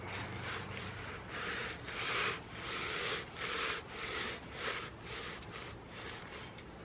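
A cloth rubs and wipes inside a plastic pot.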